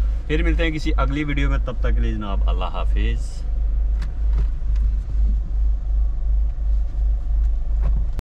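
A car engine rumbles low and steady.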